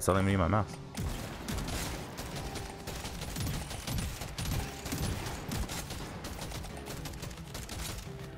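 Rapid gunfire crackles in quick bursts.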